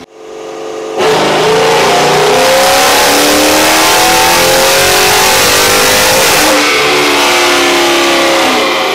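A car engine roars loudly, revving up in long rising pulls.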